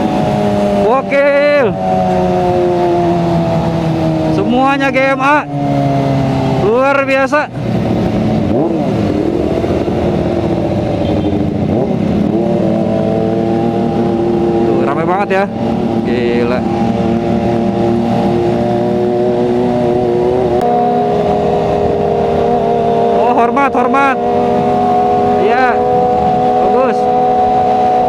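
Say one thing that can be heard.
A motorcycle engine revs up sharply now and then.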